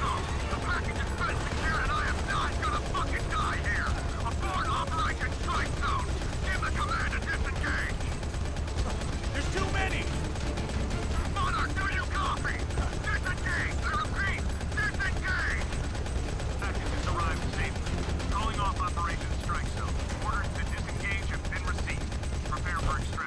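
An attack helicopter's rotor thumps overhead.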